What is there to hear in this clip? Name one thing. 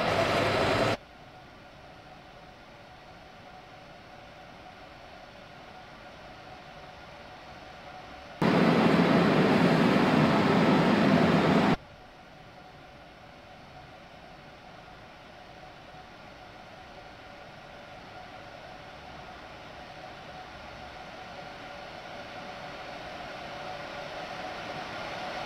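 A train hums steadily as it rolls along the rails.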